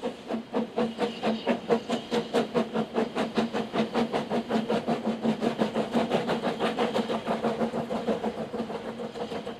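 A steam locomotive chuffs rapidly and steadily as it climbs toward the listener.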